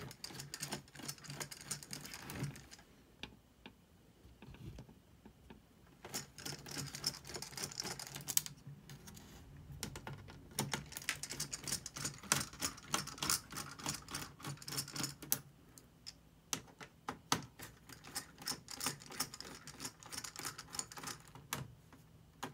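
Fingers click and tap on small plastic and metal parts.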